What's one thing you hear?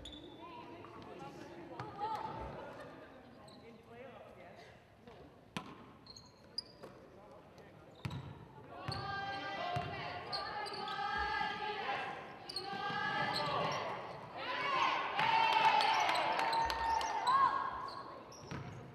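A basketball bounces on a wooden floor in an echoing gym.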